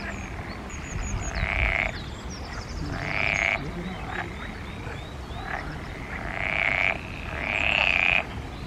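Frogs croak loudly in long rasping bursts.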